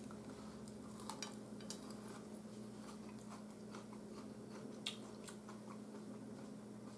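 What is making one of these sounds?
A fork scrapes and clicks against a plate.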